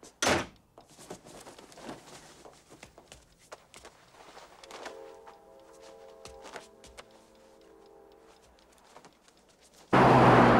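Bedding rustles softly as a child climbs out of bed.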